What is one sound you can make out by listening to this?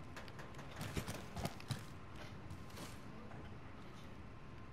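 A short clink sounds as ammunition is picked up.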